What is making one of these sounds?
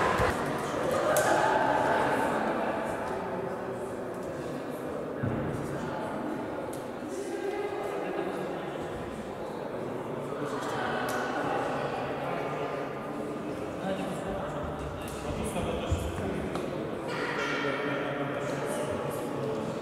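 A young man talks to a team with animation, close by, in a large echoing hall.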